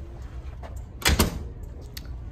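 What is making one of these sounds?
A door latch clicks.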